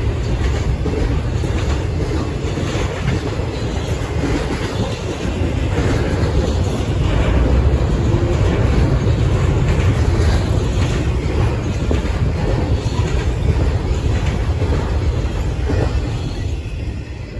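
A double-stack container freight train rolls past, its steel wheels rumbling and clattering on the rails.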